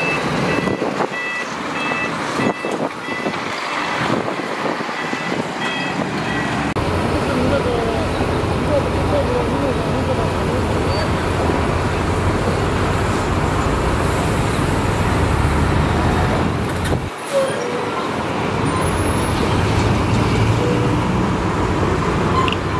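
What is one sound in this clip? A heavy truck engine rumbles as the truck drives slowly.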